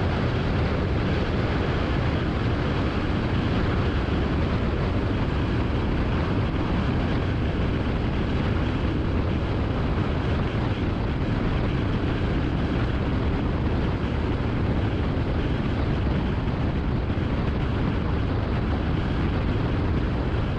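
A car drives along a highway with a steady low road rumble.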